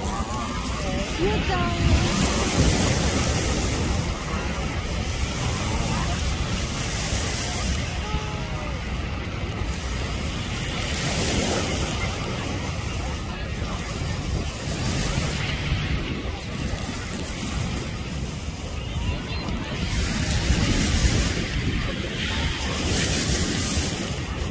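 Waves wash onto the shore nearby.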